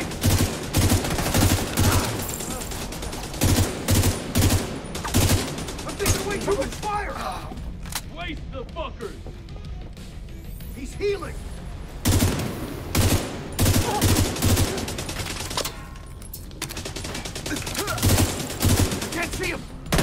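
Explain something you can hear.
Rifle shots fire in quick bursts, loud and close.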